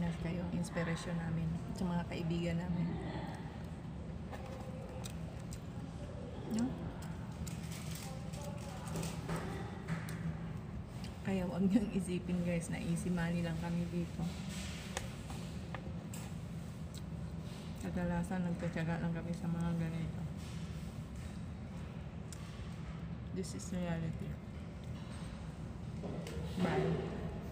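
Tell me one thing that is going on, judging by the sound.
A woman talks casually and close to a microphone.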